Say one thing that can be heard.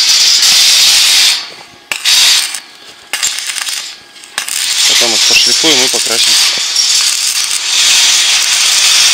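An electric welding arc crackles and hisses in bursts.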